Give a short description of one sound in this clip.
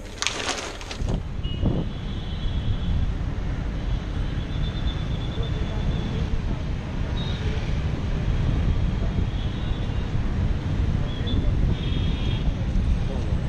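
Motorbike engines idle nearby.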